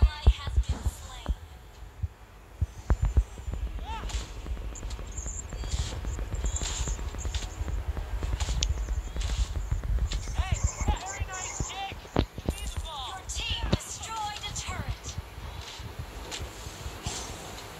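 Game weapons strike with sharp hits.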